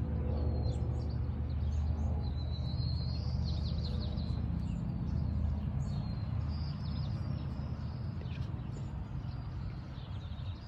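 Wind blows outdoors with a steady low rumble.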